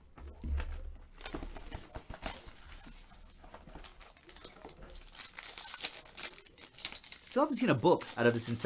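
Plastic wrapping crinkles and tears as hands open a pack.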